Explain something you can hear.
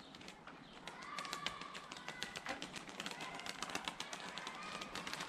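Birds' wings flap and clatter close by.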